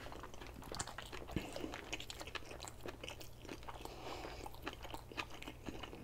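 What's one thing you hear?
A man chews food noisily and wetly close to a microphone.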